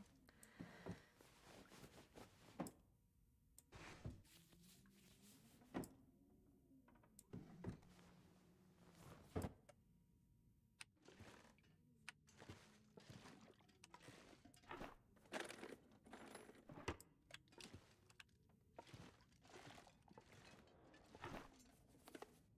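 Wooden drawers knock and rattle as they are rummaged through.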